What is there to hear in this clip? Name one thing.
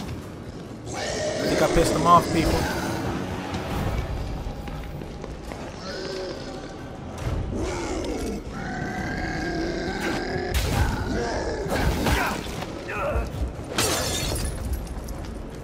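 A burning creature groans and snarls.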